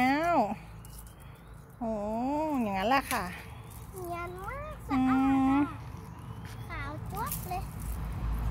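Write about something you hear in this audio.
A young girl speaks close by in a high, lilting voice.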